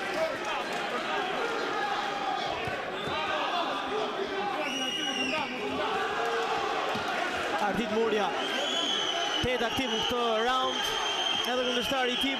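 A crowd cheers and shouts loudly all around.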